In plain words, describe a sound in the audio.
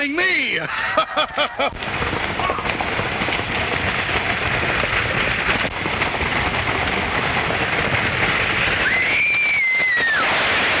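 Horses' hooves thud and scuff on a dirt road.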